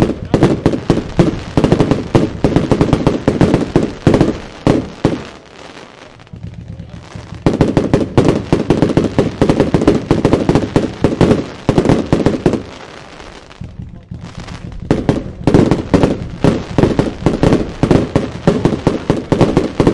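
Firework stars crackle and pop in the sky.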